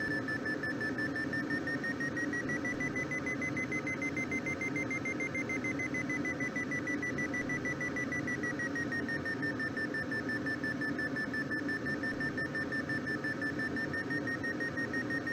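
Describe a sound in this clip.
A glider's variometer beeps rapidly in a high tone that slowly rises and then falls in pitch.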